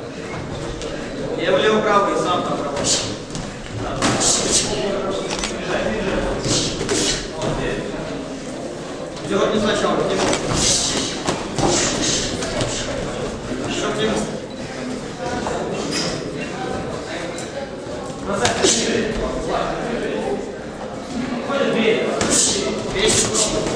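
Boxing gloves thud against each other and against bodies in quick bursts.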